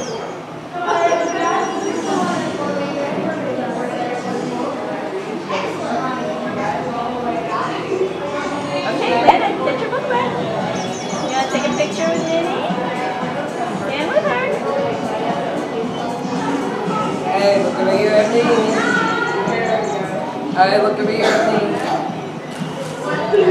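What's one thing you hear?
Young children chatter and call out close by.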